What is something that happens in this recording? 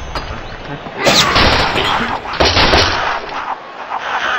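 Wooden blocks crash and clatter as a structure collapses.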